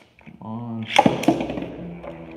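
A spinning top is launched into a plastic arena with a sharp click.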